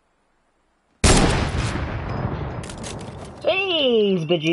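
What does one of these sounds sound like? A rifle fires a single loud shot that rings out and slowly fades.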